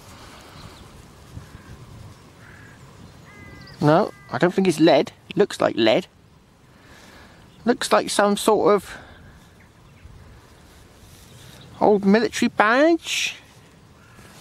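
Fingers rub and crumble dry soil off a small object.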